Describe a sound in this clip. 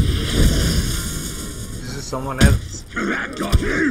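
A blade stabs into a body with a wet thud.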